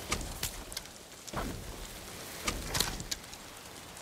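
A bow string twangs as an arrow is shot.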